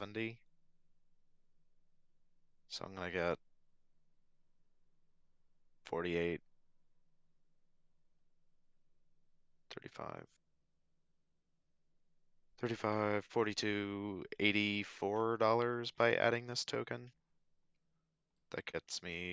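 A young man speaks casually into a close microphone, in short bursts.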